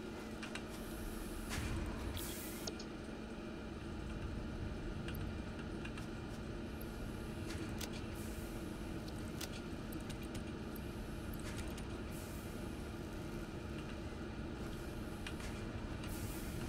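Soft clicks tick now and then.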